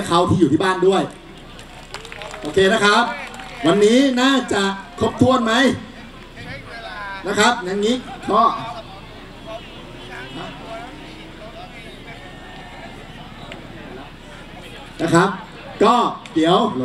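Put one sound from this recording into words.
A young woman speaks with animation through a microphone over loudspeakers.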